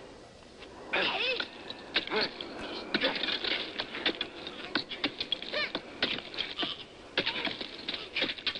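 A young man grunts and strains with effort.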